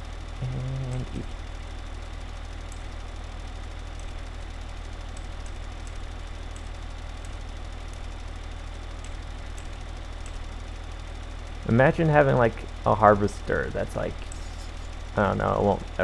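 A tractor engine drones under load.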